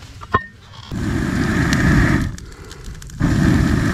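A fire roars loudly in bursts as air is blown into it.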